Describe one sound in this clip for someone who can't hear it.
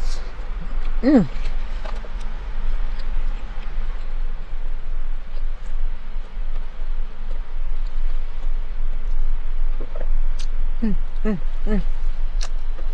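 A woman hums with pleasure while chewing.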